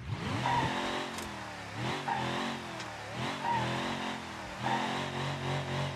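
A car's tyres scrape and bump over a kerb.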